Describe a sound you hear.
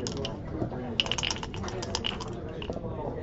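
Dice rattle in a cup and clatter onto a board.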